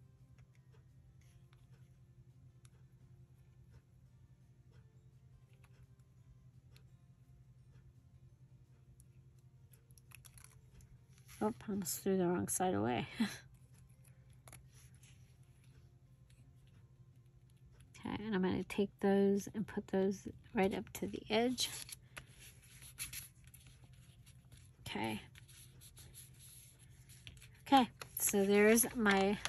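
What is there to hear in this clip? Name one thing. Paper rustles and crinkles softly as it is folded and pressed.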